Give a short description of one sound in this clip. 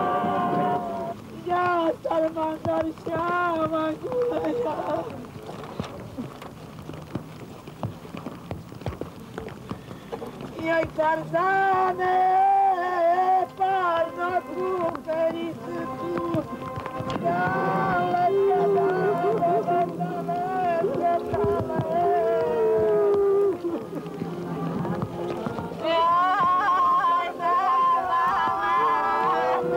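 A woman wails and sobs loudly nearby.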